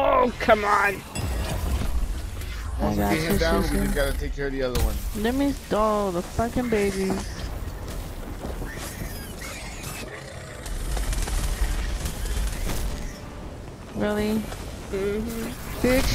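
Blasts and heavy impacts boom in a fierce battle.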